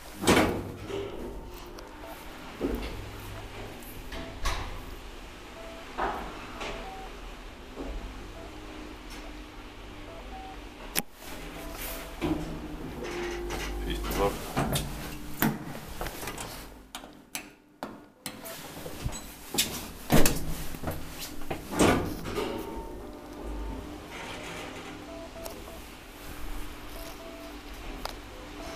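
A traction elevator car hums and rumbles as it travels.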